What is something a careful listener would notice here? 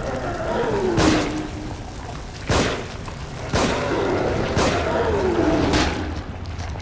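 Gunshots ring out sharply several times.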